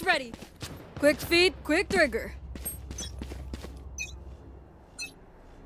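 Footsteps tread on stone steps.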